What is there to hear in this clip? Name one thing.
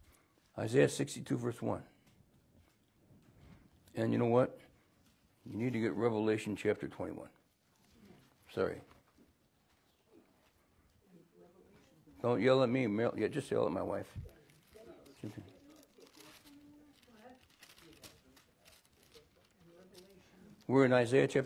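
An elderly man reads aloud slowly into a nearby microphone, with long pauses.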